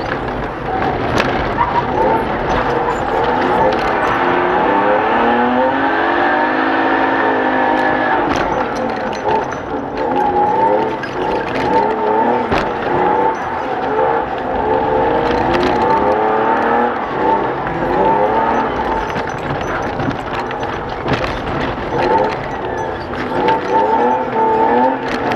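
Tyres hiss and crunch over a slushy, snowy road.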